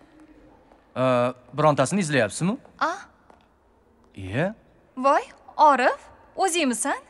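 A young woman speaks with emotion close by.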